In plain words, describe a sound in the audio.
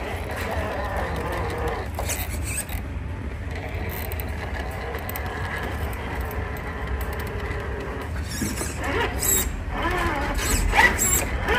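A small electric motor whirs as a toy truck crawls.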